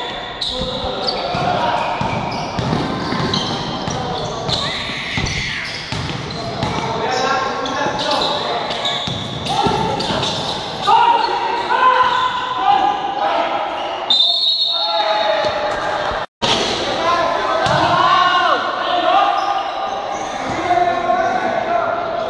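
Young men shout and call out across an echoing indoor court.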